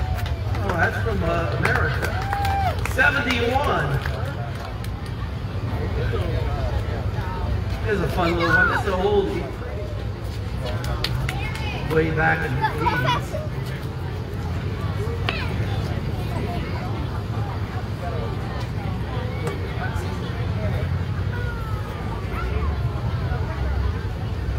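An acoustic guitar strums steadily through a loudspeaker.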